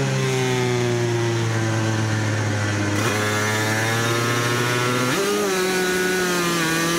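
A motorcycle engine roars loudly up close, its pitch shifting with gear changes.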